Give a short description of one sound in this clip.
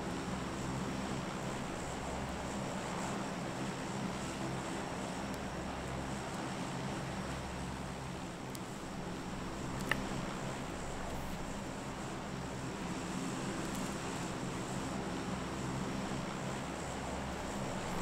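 A propeller plane's engines drone steadily and loudly.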